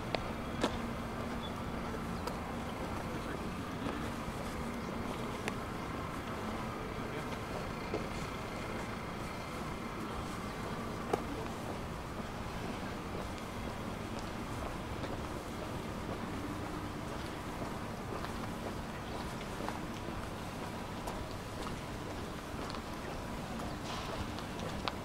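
A steady low hum of a quiet town street fills the air outdoors.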